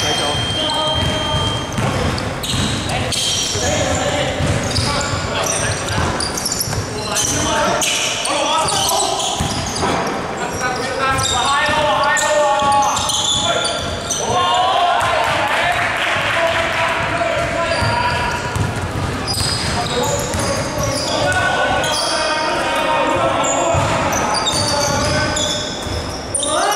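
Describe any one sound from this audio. A basketball bounces on the floor, echoing in a large hall.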